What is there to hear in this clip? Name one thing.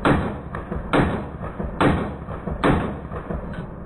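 A pistol fires loud shots outdoors in quick succession.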